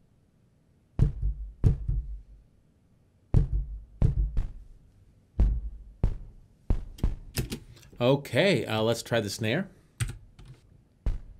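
A man plays short, sharp notes on an electronic keyboard.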